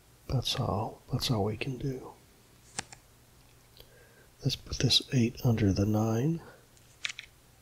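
A playing card flips over with a short, soft click.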